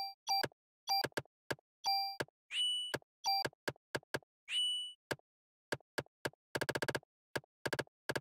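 Quick electronic clicks tick in rapid bursts.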